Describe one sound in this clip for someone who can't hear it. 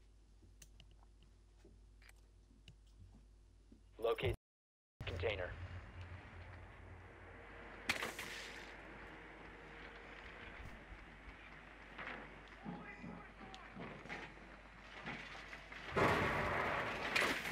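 A man talks into a microphone with animation, close by.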